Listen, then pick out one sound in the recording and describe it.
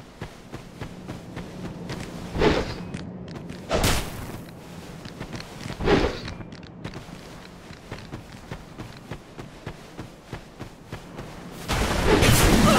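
Armoured footsteps thud steadily on soft ground.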